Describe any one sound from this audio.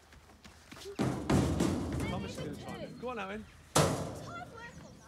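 Feet thump on a metal climbing frame.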